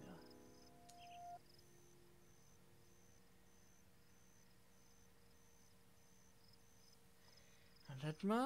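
Wind blows softly through tall grass outdoors.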